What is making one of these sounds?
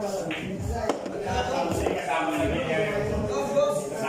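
Billiard balls click sharply together on a pool table.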